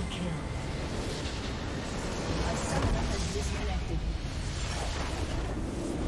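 A game tower explodes with a loud crash.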